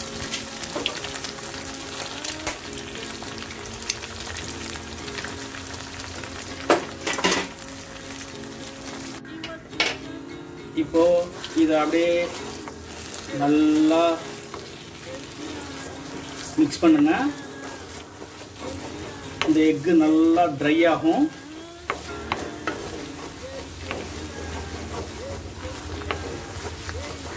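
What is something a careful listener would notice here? Eggs sizzle in oil in a wok.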